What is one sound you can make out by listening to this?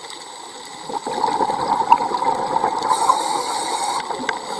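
Air bubbles gurgle and rush underwater.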